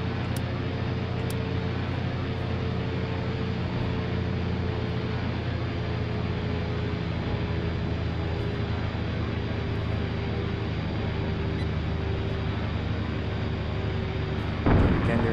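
Wind rushes over an aircraft canopy.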